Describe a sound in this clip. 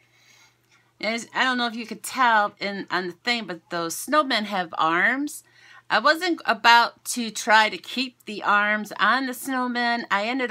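A woman talks with animation over an online call.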